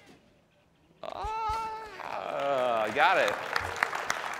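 A cartoon bird squawks with a rising and falling cry.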